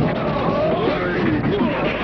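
A man shouts loudly in anger.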